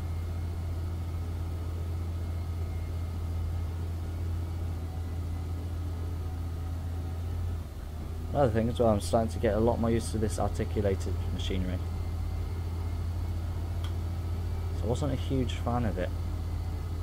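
A heavy diesel engine hums steadily.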